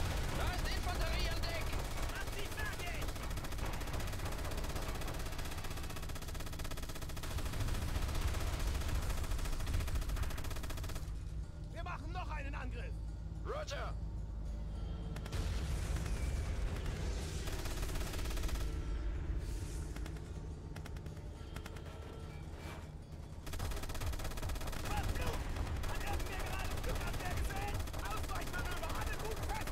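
A mounted machine gun fires.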